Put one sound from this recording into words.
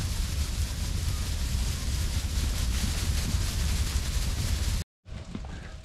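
Many sheep hooves trample over grass.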